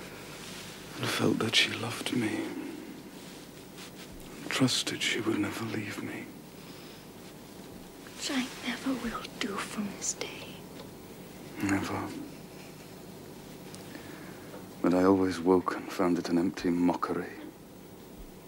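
A man speaks softly and with emotion, close by, in short broken phrases.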